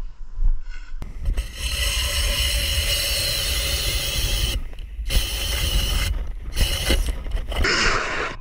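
A powered ice auger whirs steadily as it drills through ice.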